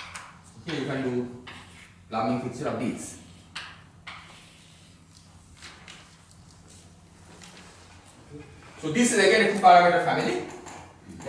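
A man lectures in an echoing hall, speaking calmly.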